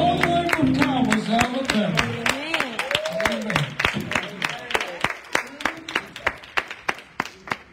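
A small group of people clap their hands in a steady rhythm.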